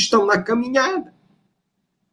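An older man speaks calmly through an online call.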